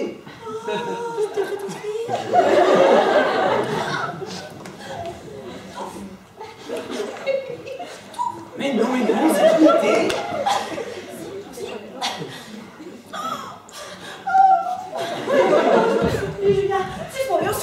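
A young woman speaks loudly and animatedly.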